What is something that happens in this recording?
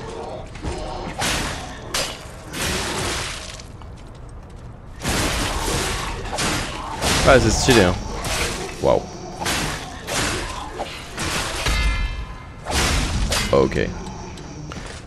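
Blades slash and clash in a fight.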